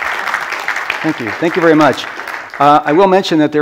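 A man speaks to an audience through a microphone in a large hall.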